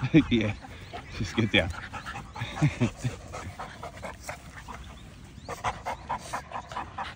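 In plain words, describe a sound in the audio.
Dogs pant and scuffle on grass.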